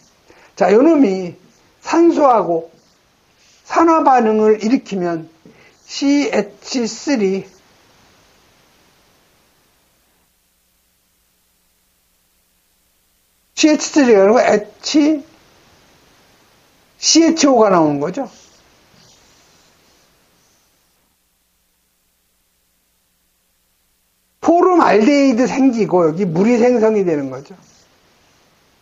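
A middle-aged man speaks calmly and clearly into a microphone, in short phrases with pauses.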